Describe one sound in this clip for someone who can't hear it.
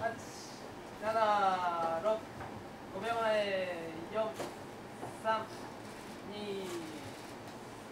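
Young women speak brightly into a microphone, heard through loudspeakers.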